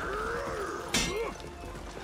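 Steel blades clash with a ringing clang.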